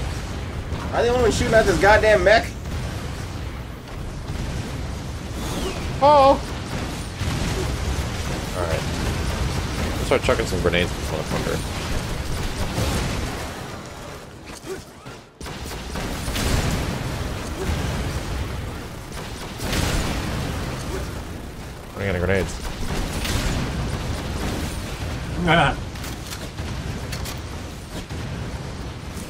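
Gunfire and explosions from a video game rumble steadily.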